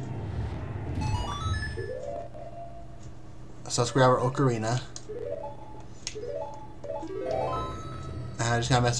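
Short electronic menu chimes blip and rise in pitch.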